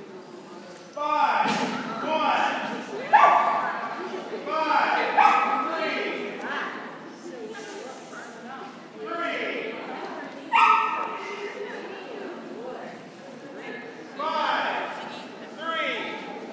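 A man calls out loudly with animation in a large echoing hall.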